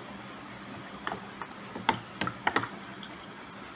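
Plastic knocks against plastic.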